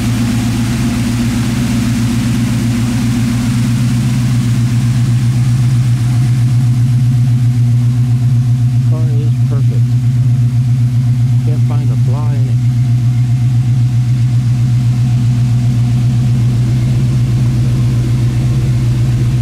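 A car engine idles with a deep, steady, throbbing rumble.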